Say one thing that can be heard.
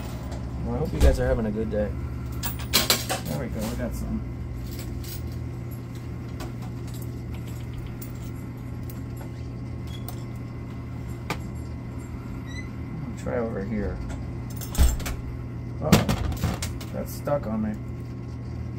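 Coins clatter and clink inside an arcade machine.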